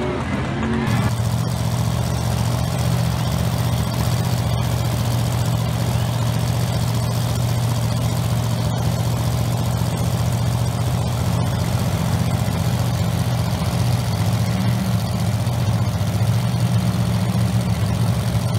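A car engine idles nearby with a steady, deep rumble.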